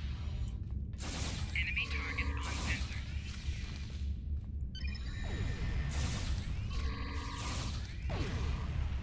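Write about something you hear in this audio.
Energy weapons fire in sharp bursts.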